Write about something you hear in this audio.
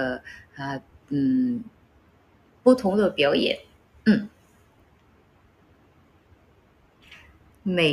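A young woman speaks softly and close by, in short phrases.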